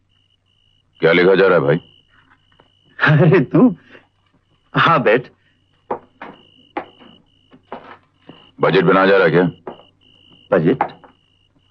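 A man speaks in short, tense phrases.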